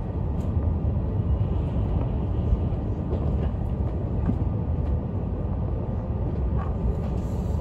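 Train wheels click and clatter on the rails.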